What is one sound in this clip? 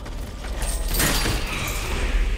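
A blade swooshes and strikes with a heavy hit.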